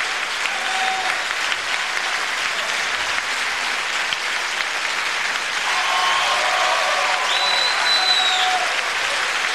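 A large audience applauds steadily in an echoing hall.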